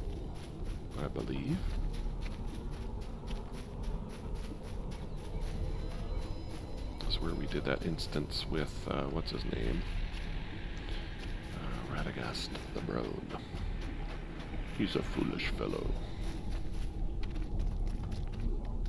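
Footsteps run quickly through dry grass.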